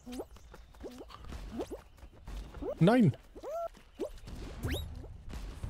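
Cartoonish springy boing sounds play in quick bursts.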